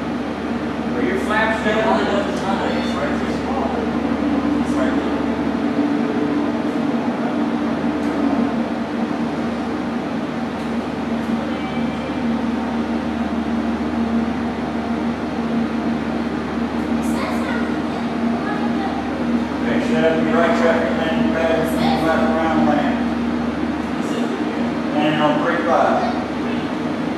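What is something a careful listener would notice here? A man speaks calmly in a room, a little way off.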